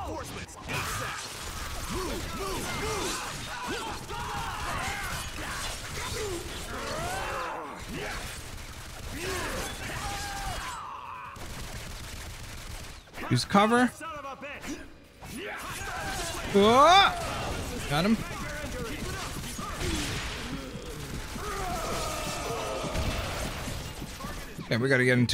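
Metal blades slash and clang in a fight.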